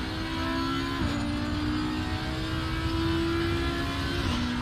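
A racing car engine's pitch drops sharply as it shifts up a gear.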